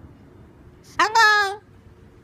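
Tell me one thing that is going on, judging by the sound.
A cockatoo lets out a loud screech.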